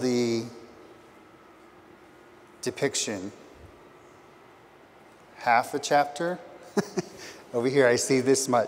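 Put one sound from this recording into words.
A man speaks calmly through a microphone in a large room, with pauses.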